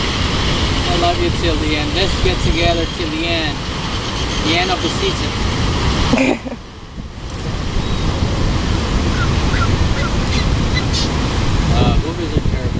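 Seabirds whistle and call in short, rising and falling notes nearby.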